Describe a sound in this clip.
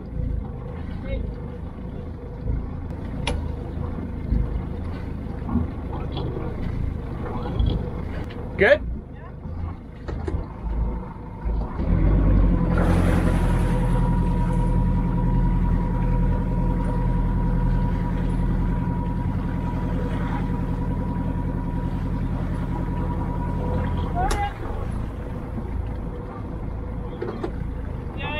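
Wind blows over the deck outdoors.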